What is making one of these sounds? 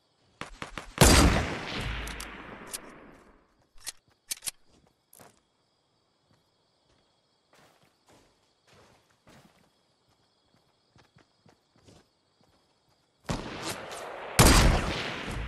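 A sniper rifle fires a loud, booming shot that echoes away.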